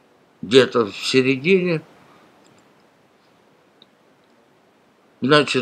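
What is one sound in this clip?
An elderly man speaks calmly, close to a webcam microphone.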